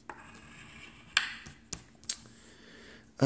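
A coin scrapes and taps against a scratch card.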